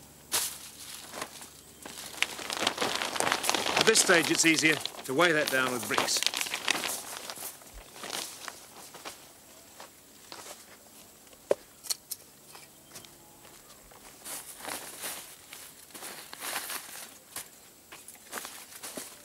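Plastic sheeting rustles and crinkles as it is handled.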